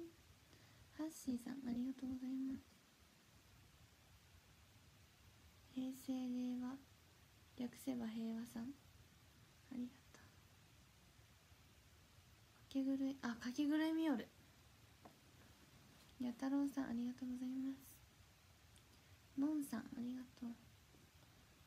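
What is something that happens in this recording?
A young woman speaks casually and close to a microphone, in short bursts with pauses.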